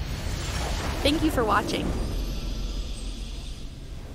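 A triumphant victory chime rings out.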